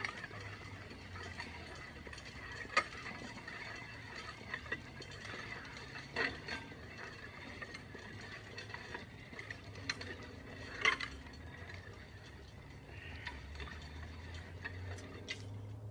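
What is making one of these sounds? A weighted sled scrapes along pavement in the distance.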